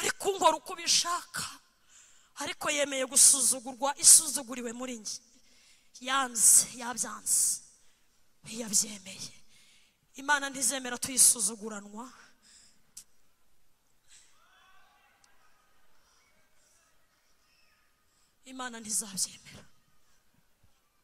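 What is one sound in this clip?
A woman preaches with animation through a microphone in a large echoing hall.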